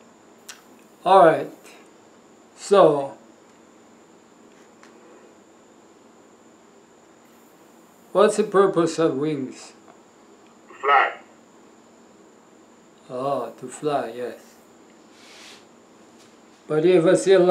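An older man speaks calmly into a close microphone, in short phrases with pauses.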